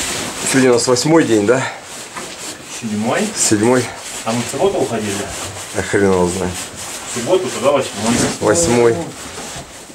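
Bags and gear rustle as a man packs.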